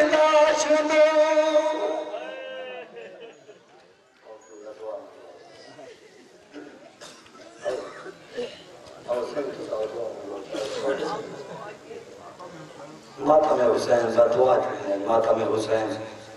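A young man speaks passionately into a microphone over a loudspeaker, with echo.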